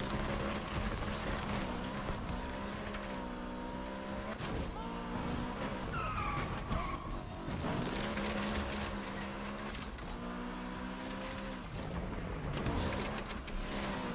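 Tyres screech on the road while the car drifts.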